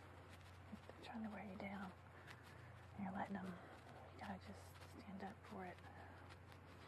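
A woman speaks softly and close by.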